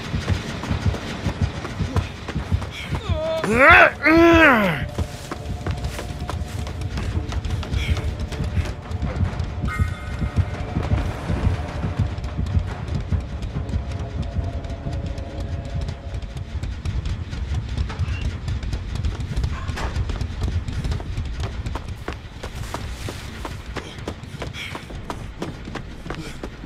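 Footsteps run over grass and wooden boards.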